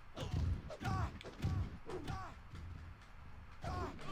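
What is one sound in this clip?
Heavy thuds of bodies hitting a wrestling mat.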